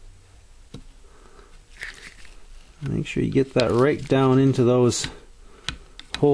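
A metal tool scrapes and clicks against metal.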